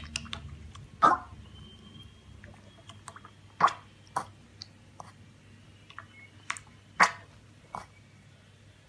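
A metal bowl clinks and knocks.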